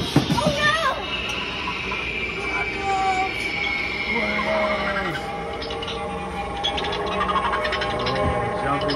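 A toy spider plays a warbling electronic sound effect.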